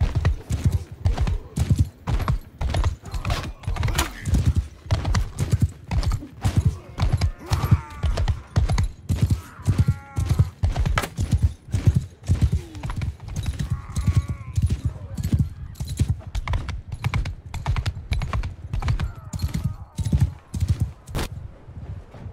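Heavy footsteps pound quickly and steadily on the ground.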